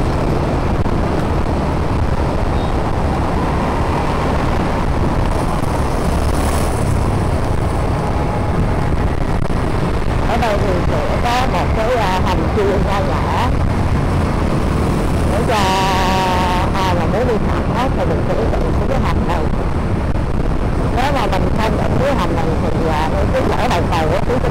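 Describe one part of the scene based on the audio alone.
Wind rushes loudly past a motorcycle rider.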